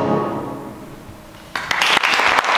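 A brass band holds a final chord that rings out and fades in a large hall.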